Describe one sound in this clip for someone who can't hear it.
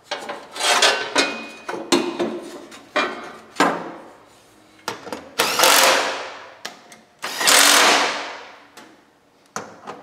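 Metal parts clank and knock as they are handled.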